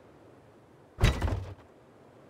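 A heavy door is set in place with a loud thud.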